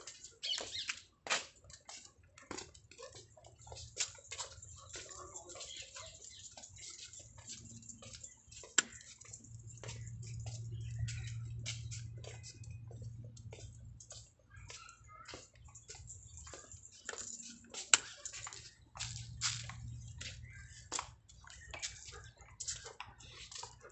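Footsteps patter on paving stones close by.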